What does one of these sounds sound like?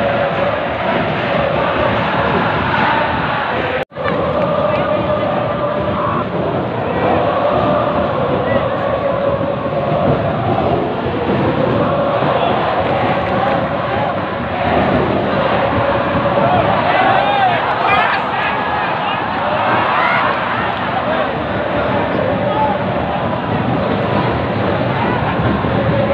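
A large stadium crowd chants and sings loudly outdoors.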